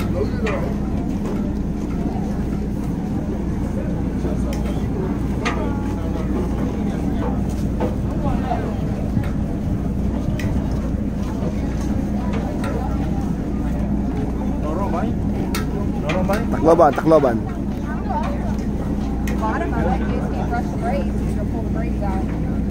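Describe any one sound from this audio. A boat engine idles with a low, steady hum.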